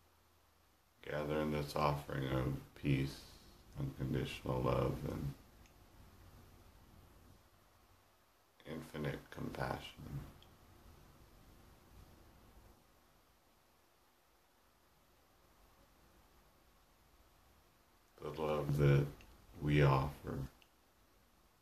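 A man speaks calmly and close, in short bursts with pauses.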